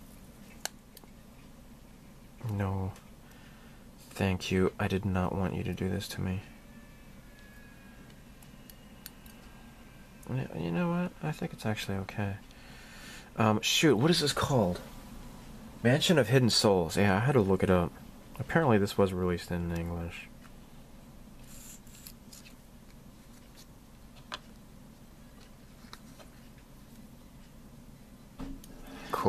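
Small plastic parts click and tap against a hard surface.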